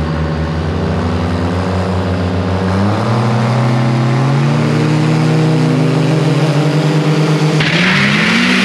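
A truck's engine revs up, rising in pitch in steps.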